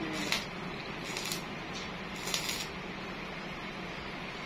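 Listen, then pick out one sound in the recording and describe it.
An electric welder crackles and hisses in short bursts.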